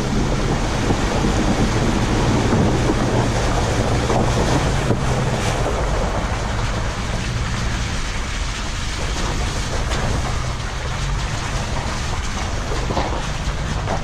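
Tyres splash and crunch through mud and puddles.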